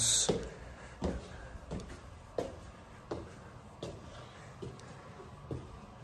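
Footsteps climb a flight of stairs at an even pace.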